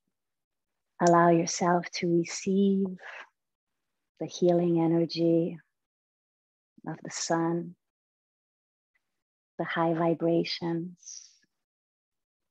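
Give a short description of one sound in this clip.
A woman speaks calmly and slowly, close to a microphone, with long pauses.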